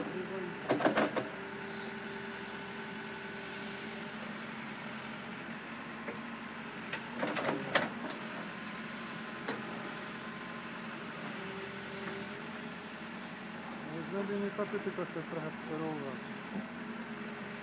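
A diesel engine hums steadily nearby.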